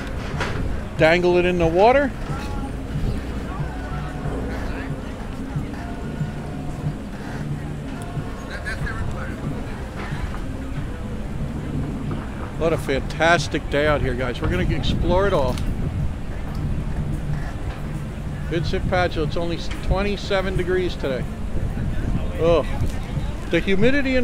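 An adult voice talks close by now and then.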